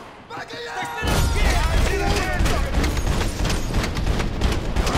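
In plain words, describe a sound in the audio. A gun fires in rapid bursts, echoing in a large room.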